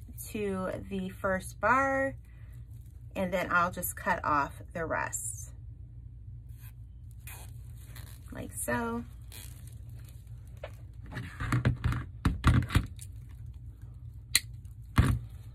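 Plastic mesh ribbon rustles and crinkles as hands twist and shape it.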